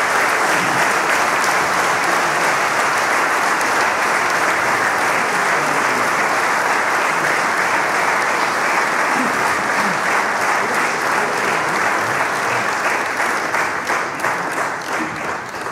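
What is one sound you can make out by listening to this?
An audience applauds loudly in a large echoing hall, the clapping thinning out toward the end.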